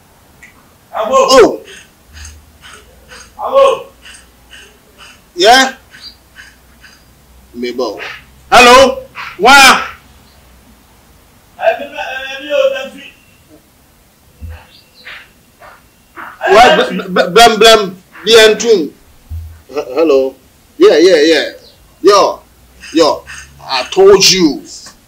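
A young man talks on a phone with animation, close by, in short bursts with pauses.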